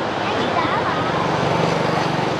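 A motorbike engine drones close by as it rides past.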